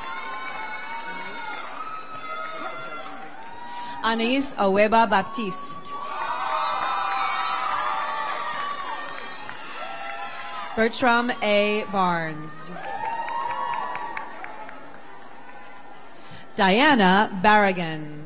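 A woman reads out names over a loudspeaker in a large hall.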